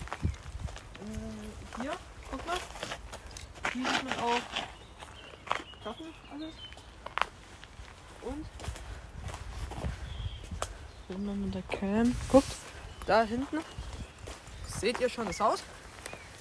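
A young man talks close by with animation.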